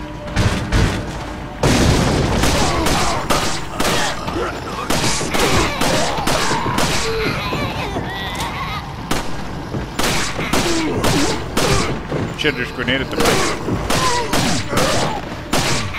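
A handgun fires shot after shot, with sharp echoing cracks.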